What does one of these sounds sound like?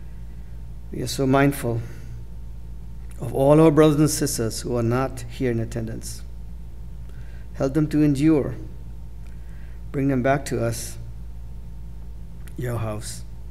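An elderly man prays slowly and solemnly into a microphone, in short phrases with pauses.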